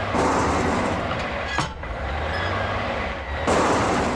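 Blocks clatter into a metal bin.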